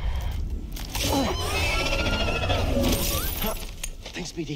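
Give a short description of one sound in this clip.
A large creature lets out a low, warbling cry.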